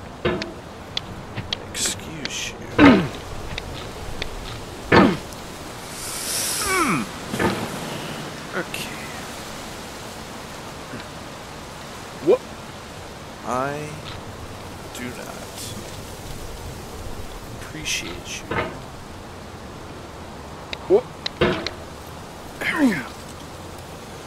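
A metal hammer clangs and scrapes against rock.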